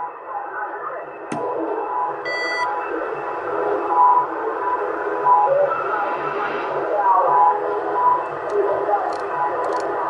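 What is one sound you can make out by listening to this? A knob clicks as it is turned.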